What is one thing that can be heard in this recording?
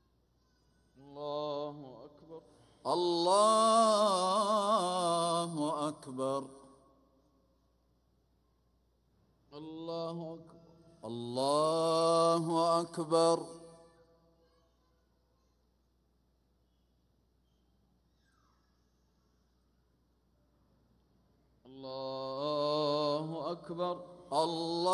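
A man chants in long, drawn-out phrases through loudspeakers in a vast, echoing space.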